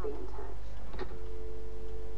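A telephone handset clicks as it is lifted.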